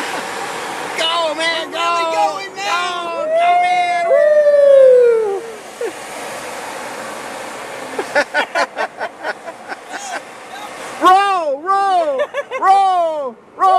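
A man sings loudly from a nearby car window.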